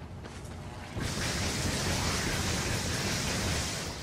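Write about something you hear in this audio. Electricity crackles and buzzes loudly.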